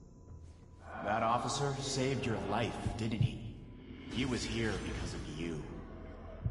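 A man speaks slowly in a low, menacing voice.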